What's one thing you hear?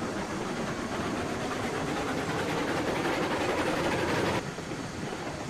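Steam hisses loudly from a locomotive, then cuts off abruptly.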